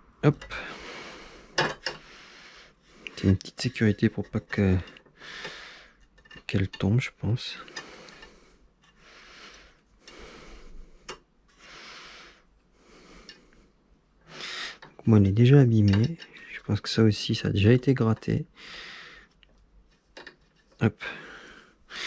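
A small metal hex key clicks and scrapes against metal parts.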